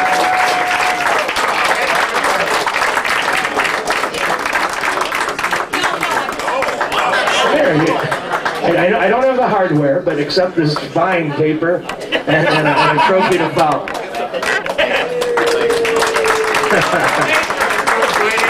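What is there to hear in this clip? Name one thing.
A dense crowd chatters loudly in a busy room.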